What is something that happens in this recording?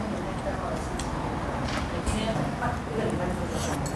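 A young woman slurps noodles.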